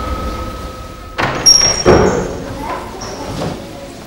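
A door opens with a click.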